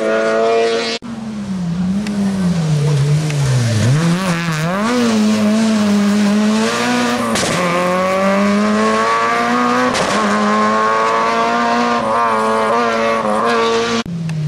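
A second rally car's engine roars and revs up through the gears as it races past and away.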